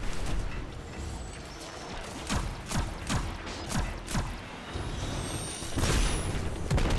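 A rifle fires in sharp shots.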